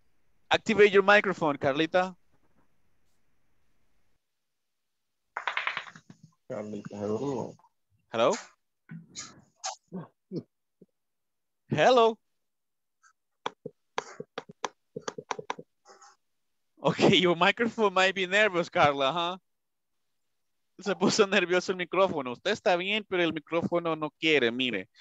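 A man speaks through an online call, explaining in a teaching manner.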